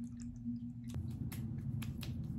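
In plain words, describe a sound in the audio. Hands rub softly over a face.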